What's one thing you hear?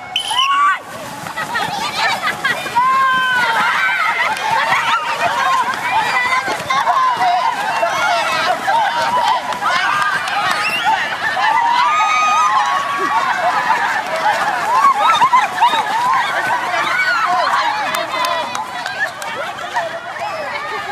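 A crowd of women and children shouts and cheers excitedly outdoors.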